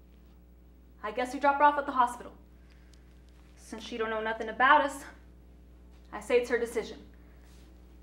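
A young woman speaks with strong emotion, close by.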